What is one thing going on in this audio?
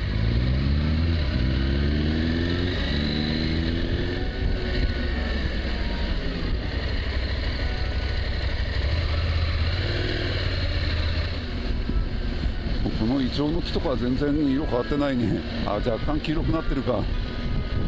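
Wind rushes steadily past a moving motorcycle.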